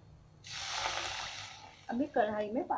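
Liquid hisses and sizzles in a hot pan.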